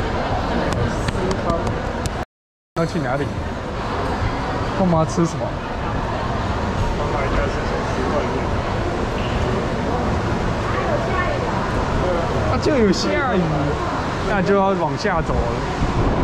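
An escalator hums and rumbles steadily.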